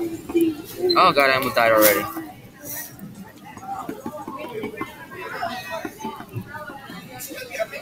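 A short game chime sounds as a snake eats an apple.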